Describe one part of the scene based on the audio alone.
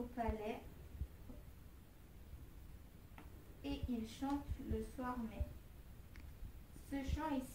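A young girl speaks calmly, close by and slightly muffled.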